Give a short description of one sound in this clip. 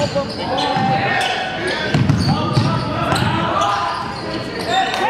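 A crowd of spectators cheers and calls out in a large echoing gym.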